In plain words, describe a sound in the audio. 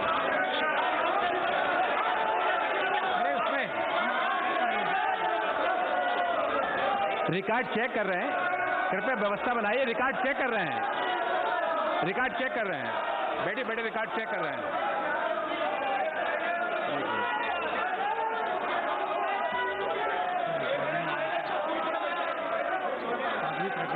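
A crowd of men talk and shout over one another in a large hall.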